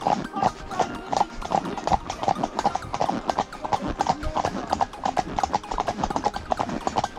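Horse hooves clop steadily on a hard track.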